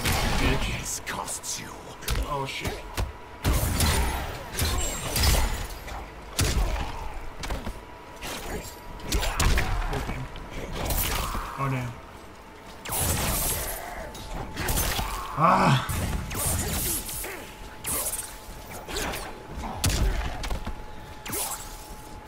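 Punches and kicks land with heavy, rapid thuds.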